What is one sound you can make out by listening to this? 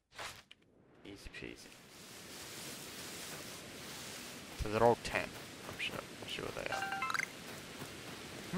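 Footsteps rustle through grass outdoors in wind.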